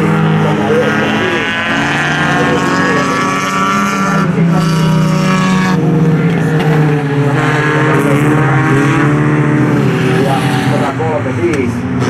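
Engines rise and fall in pitch as cars shift gears and take corners.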